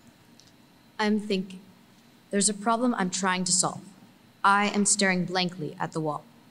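A young girl reads aloud into a microphone in a large echoing room.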